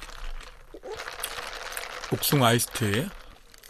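A young man slurps a drink through a straw.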